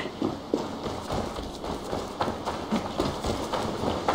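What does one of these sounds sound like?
Footsteps tread over soft ground.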